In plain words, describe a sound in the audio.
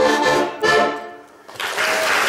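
An accordion plays two loud final chords.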